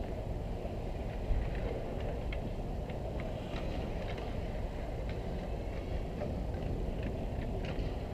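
Hockey skates scrape and carve across ice.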